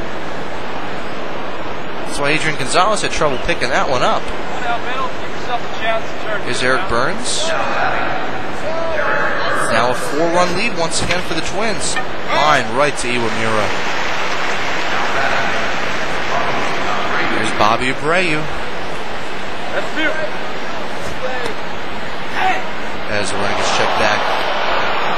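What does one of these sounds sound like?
A crowd murmurs and cheers steadily in a large stadium.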